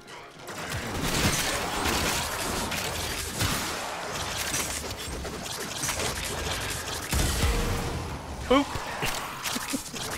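Energy blasts whoosh and boom.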